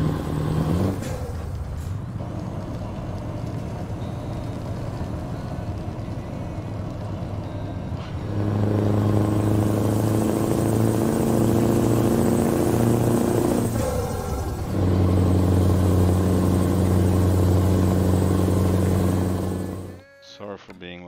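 A truck engine rumbles steadily, growing louder as it pulls harder.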